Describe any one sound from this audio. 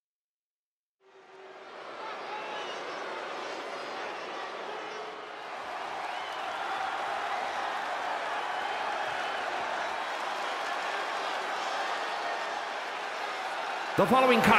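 A large arena crowd cheers and roars, echoing loudly.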